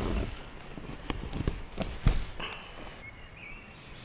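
Tent fabric rustles and crinkles close by.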